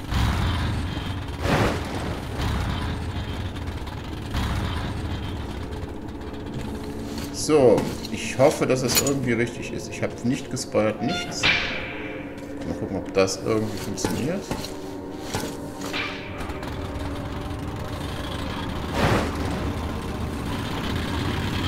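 A rail cart rumbles steadily along tracks.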